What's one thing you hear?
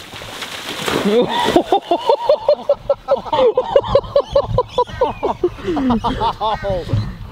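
Men laugh and whoop loudly nearby.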